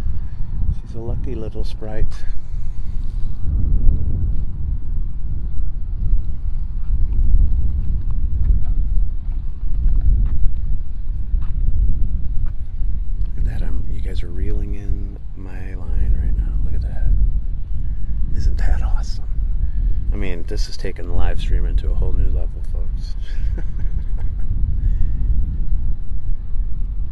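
Wind blows steadily across the microphone outdoors.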